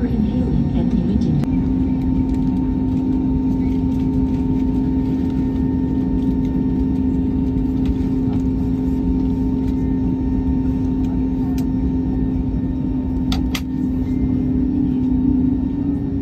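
A jet engine hums steadily and loudly from inside an aircraft cabin.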